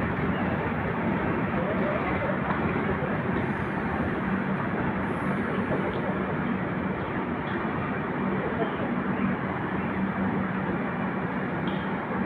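A passenger train rumbles and rattles steadily along the tracks close by.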